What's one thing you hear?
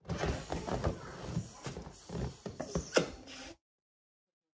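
Rubber balloons squeak as they are squeezed together.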